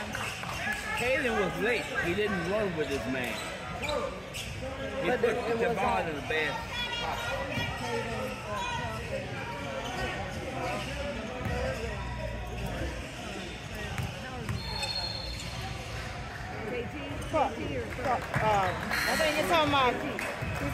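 Young men and boys call out and chatter in a large echoing hall.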